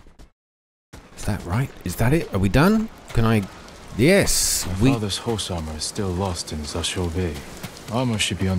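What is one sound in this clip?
Waves wash onto a pebbly shore.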